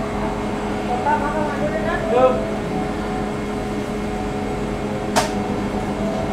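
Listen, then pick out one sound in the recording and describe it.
Metal trays and utensils clink now and then as a baker works.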